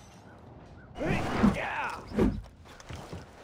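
A heavy weapon whooshes through the air in a game.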